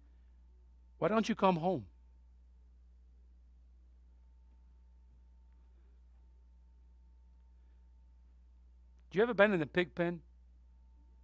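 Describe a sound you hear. A man speaks slowly and deliberately through a microphone, with long pauses.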